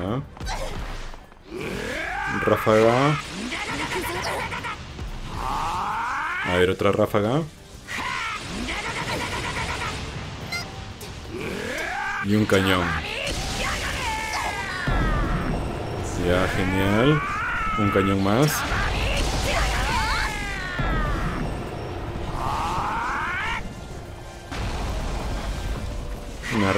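Energy blasts crackle and roar with loud booms.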